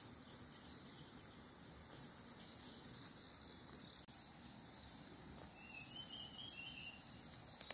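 Hands press and scrape loose soil around small plants.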